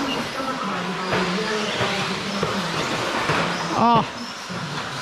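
Small electric motors whine as remote-control cars race around.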